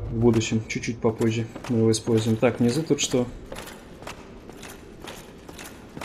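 Armoured footsteps thud on wooden boards.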